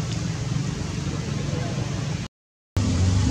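A monkey splashes through shallow water.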